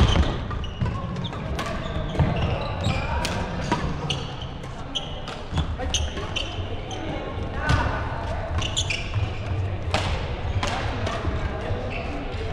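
Sneakers squeak sharply on a sports floor.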